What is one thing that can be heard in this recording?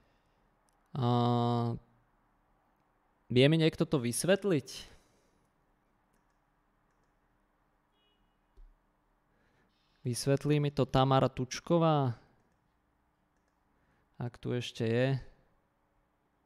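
A man speaks calmly and close to a microphone, in short bursts with pauses.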